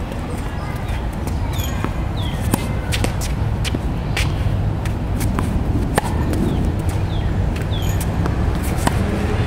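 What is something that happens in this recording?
A tennis racket hits a ball with sharp pops.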